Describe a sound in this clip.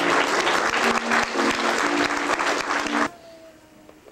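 Young children sing together loudly.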